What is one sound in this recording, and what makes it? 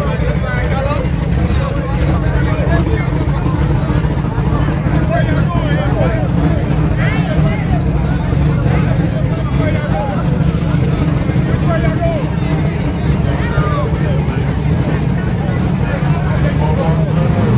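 Car engines rumble and idle loudly nearby.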